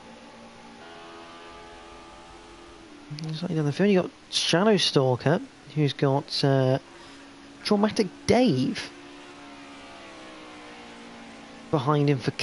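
A racing car engine drones steadily in the distance.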